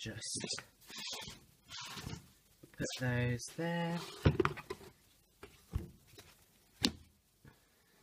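Notebooks are handled and shuffled with soft paper rustling and knocks.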